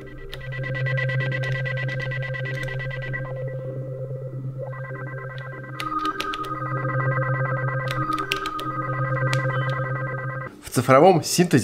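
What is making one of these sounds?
A drum machine plays a steady electronic beat.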